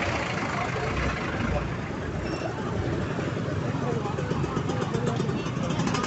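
Motorbike engines hum and pass by.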